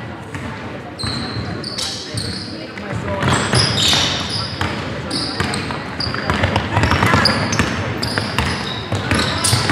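Basketball shoes squeak sharply on a hardwood court.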